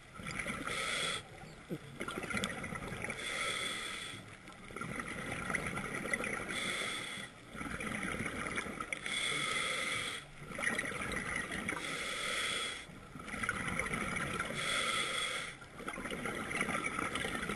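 Air bubbles rush and gurgle underwater in regular bursts.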